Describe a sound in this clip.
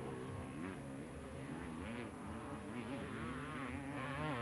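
A motorcycle engine revs and roars nearby.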